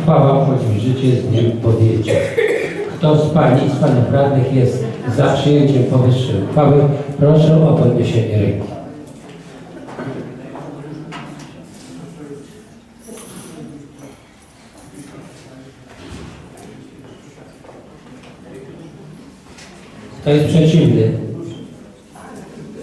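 A man speaks loudly over a loudspeaker in an echoing hall.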